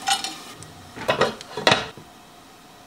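A metal lid clinks onto a pan.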